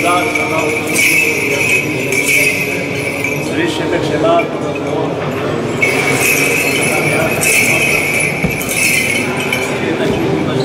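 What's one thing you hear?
Small bells on a swinging censer jingle rhythmically.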